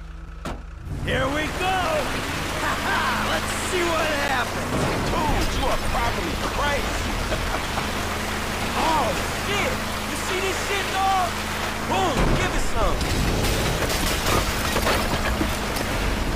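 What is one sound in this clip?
Tyres skid and squeal on a dirt road.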